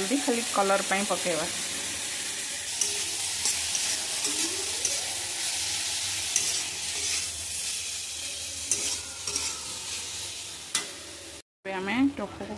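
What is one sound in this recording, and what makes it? Vegetables sizzle loudly in hot oil.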